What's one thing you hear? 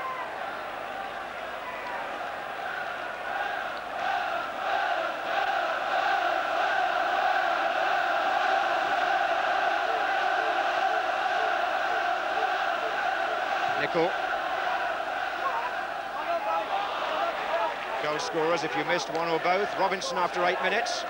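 A large stadium crowd roars and chants, echoing around the ground.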